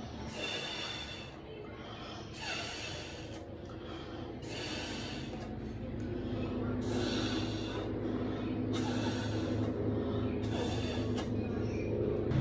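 A young woman blows hard through a bottle in repeated bursts.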